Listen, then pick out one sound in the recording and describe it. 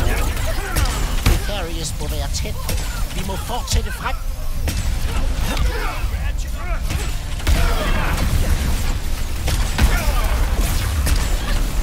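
Guns fire rapid energy blasts.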